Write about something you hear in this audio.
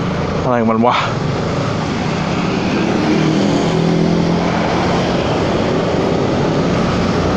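A scooter engine hums steadily.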